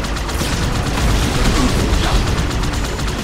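Energy blasts burst with a crackling explosion.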